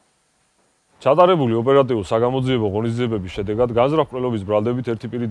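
A young man speaks calmly and close to the microphone.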